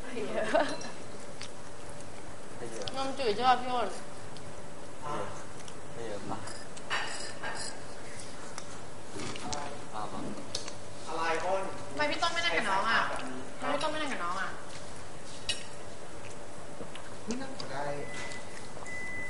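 Young women and men talk casually nearby.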